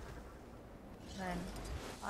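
A magical burst rings out with a bright shimmer.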